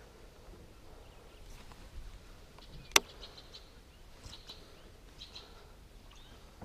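A fishing reel clicks softly as line is wound in.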